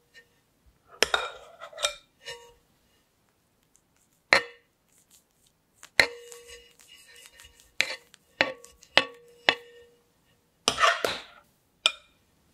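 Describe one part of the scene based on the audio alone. A metal spatula scrapes and smooths soft frosting.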